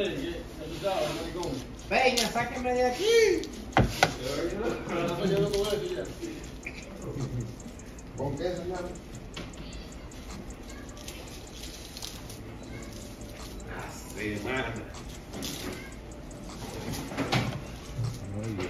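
Dry leaves rustle and crinkle in hands.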